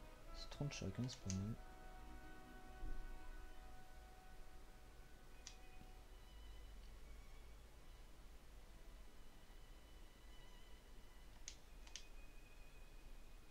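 Electronic game music plays softly.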